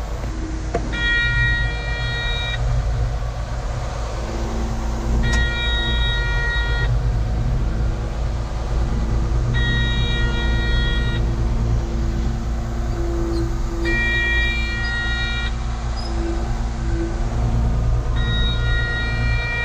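A reverse alarm beeps in bursts at regular intervals.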